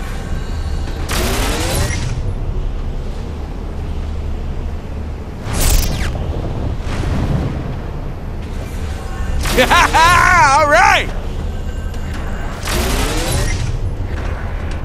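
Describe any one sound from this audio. A bright chime rings out as a glowing crystal is collected.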